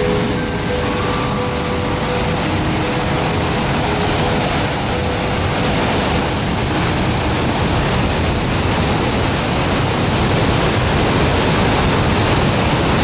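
Floodwater roars loudly over rapids and a weir, steady and close.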